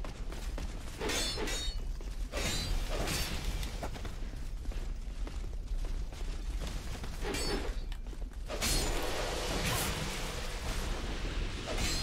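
Swords clang and strike in a fight.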